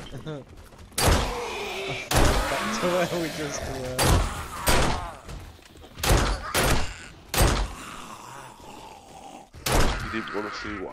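Gunshots fire in loud, sharp bursts with echoing ringing.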